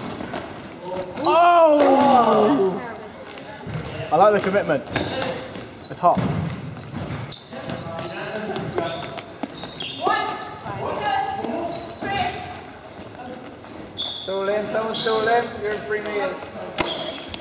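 Sneakers squeak on a hard floor.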